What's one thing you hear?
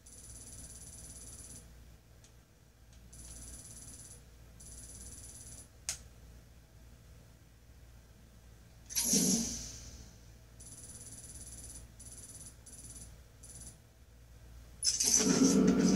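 Soft electronic menu tones play from a television speaker.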